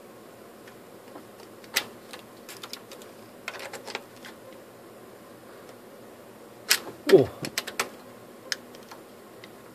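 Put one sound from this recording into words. A cable plug scrapes and clicks into a port.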